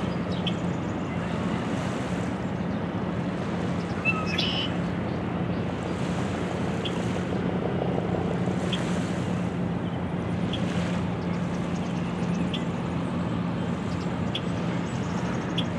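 Small waves lap gently against a stony shore.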